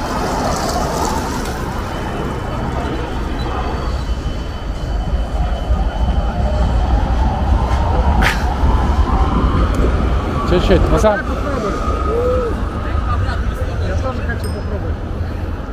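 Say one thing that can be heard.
Skateboard wheels roll and rumble over rough pavement.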